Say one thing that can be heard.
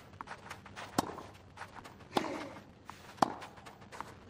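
A tennis ball is struck sharply back and forth by rackets.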